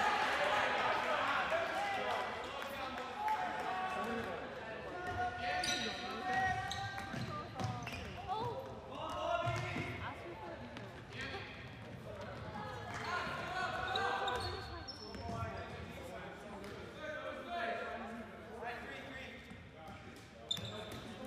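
A ball bounces on a hard floor.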